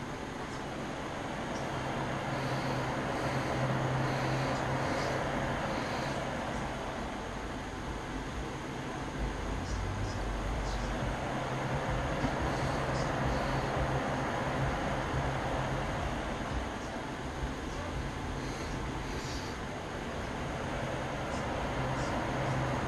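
A small paintbrush taps softly against a paint jar.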